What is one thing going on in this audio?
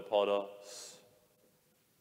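A man sings a short phrase through a microphone in an echoing hall.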